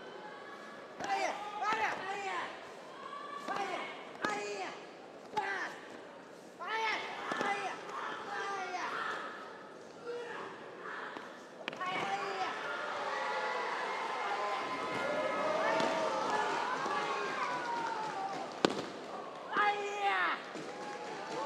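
Young men shout sharply together in an echoing hall.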